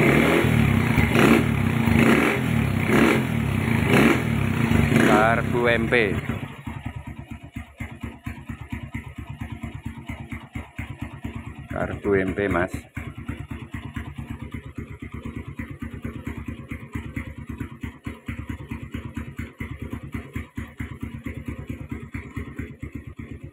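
A motorcycle engine idles with a rapid, steady putter close by.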